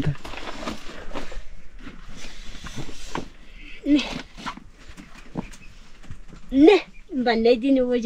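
A plastic bag rustles.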